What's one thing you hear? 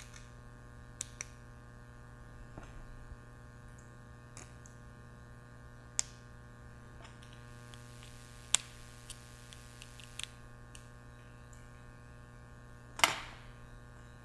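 Small metal parts click and tap together.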